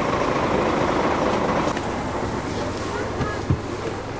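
A bus engine rumbles steadily nearby.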